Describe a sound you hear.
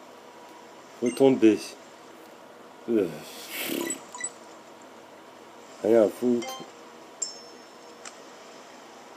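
A handheld game console plays short electronic game sounds through its small speaker.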